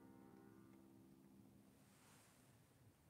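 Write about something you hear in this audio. A harmonium holds a chord that slowly fades away.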